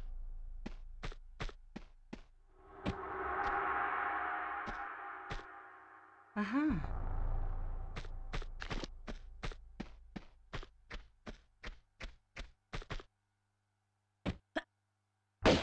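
Quick footsteps run across a hard stone floor.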